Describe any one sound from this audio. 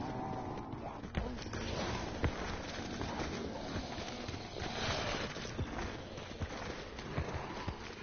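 Footsteps thud quickly as someone runs.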